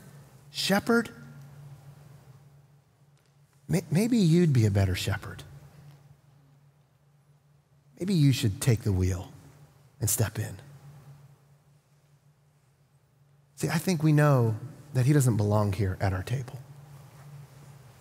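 A middle-aged man speaks with animation into a microphone, with pauses between phrases.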